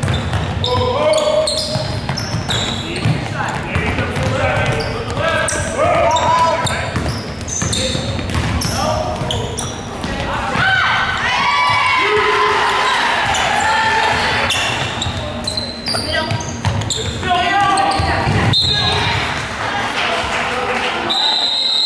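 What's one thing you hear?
A basketball bounces and thuds on the court.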